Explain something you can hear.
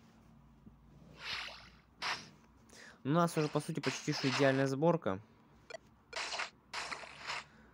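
Short electronic hit sounds ring out as fighters trade blows.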